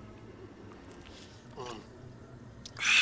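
A man gulps a drink from a bottle.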